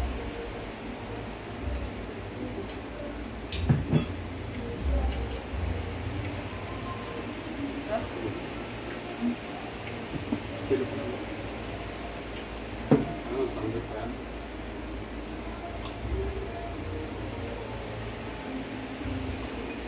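A young woman chews and slurps food close by.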